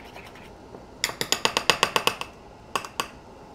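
A spoon clinks rapidly against a ceramic bowl while stirring.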